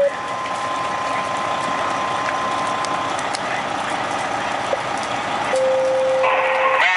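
A fire engine's pump hums and whines steadily close by.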